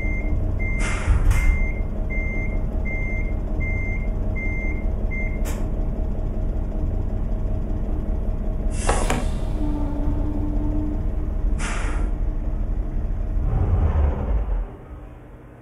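A truck engine idles with a low, steady rumble, then shuts off.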